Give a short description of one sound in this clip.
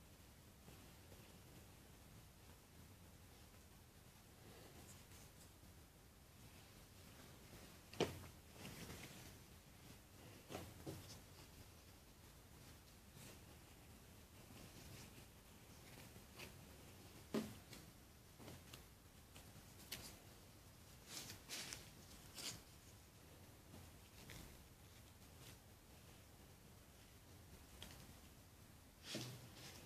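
Cloth rustles and shuffles as hands handle clothes.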